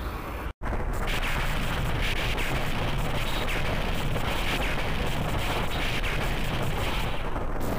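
Electricity crackles and sparks.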